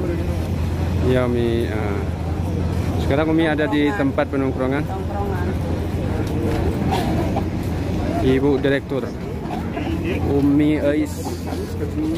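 An elderly woman speaks close by with animation.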